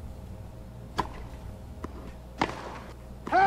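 A tennis ball is struck by a racket with sharp pops.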